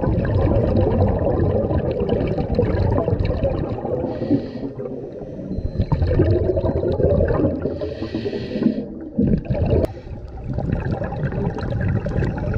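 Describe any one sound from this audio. Scuba breathing bubbles gurgle and rumble underwater.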